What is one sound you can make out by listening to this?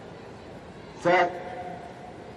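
A starting signal sounds sharply.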